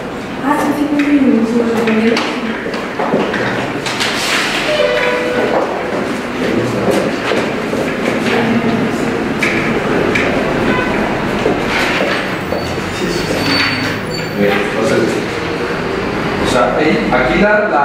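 Several adult men and women talk calmly nearby.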